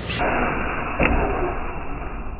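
A toy truck's tyres thump against a curb.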